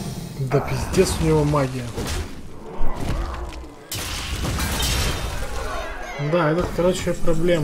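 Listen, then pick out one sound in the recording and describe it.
Magical game effects whoosh and chime.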